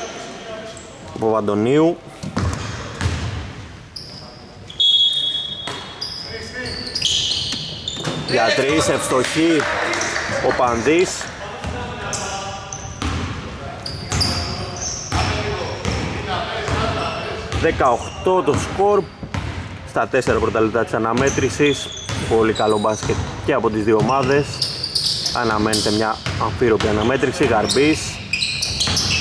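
A basketball bounces on a wooden court in a large echoing hall.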